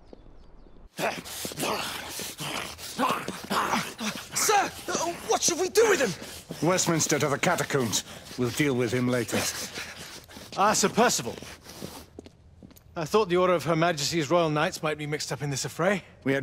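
A man speaks in a low, stern voice, close up.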